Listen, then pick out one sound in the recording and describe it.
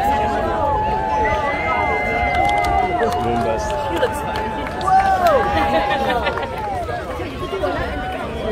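A large crowd chatters and calls out all around outdoors.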